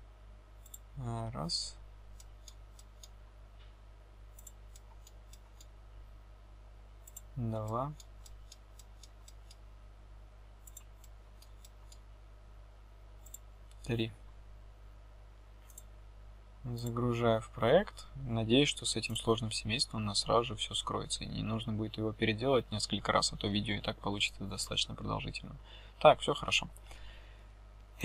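A young man speaks calmly and close to a microphone, in short phrases with pauses.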